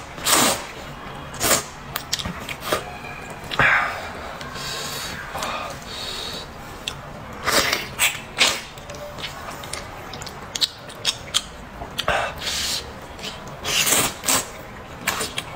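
A young man slurps noodles loudly, close up.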